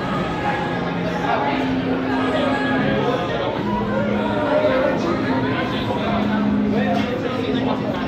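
A crowd of men and women chatter in an echoing indoor hall.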